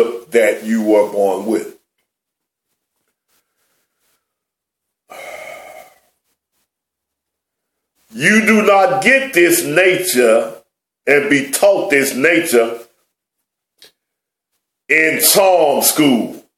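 A middle-aged man speaks with animation close to a microphone, in bursts with pauses.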